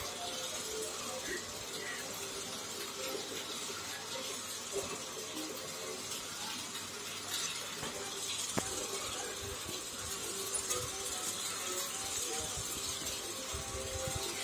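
A small toy train whirs steadily around a circular track.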